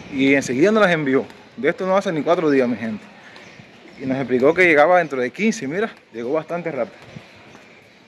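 A young man speaks with animation close to the microphone, outdoors.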